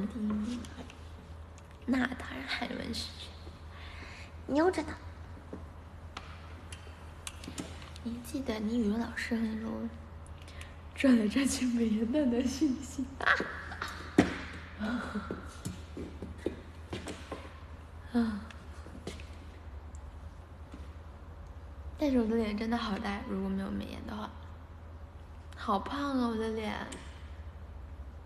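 A young woman talks casually and close to a microphone, in short bursts.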